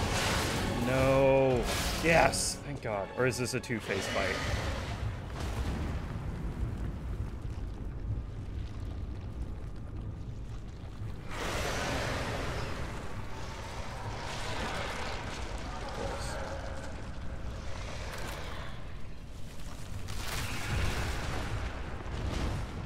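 A monster growls and roars loudly.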